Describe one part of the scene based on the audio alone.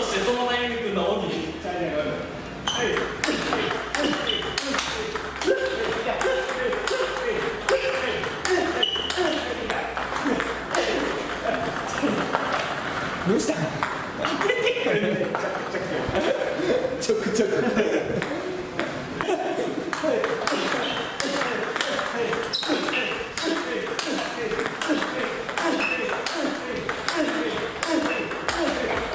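Table tennis balls are struck with bats and bounce on a table in rapid succession.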